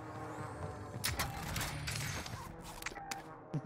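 A metal crate lid clanks open.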